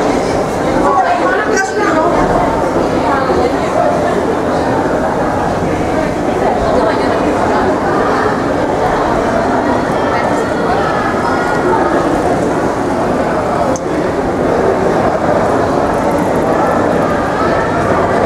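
A crowd of people chatter nearby in a large echoing hall.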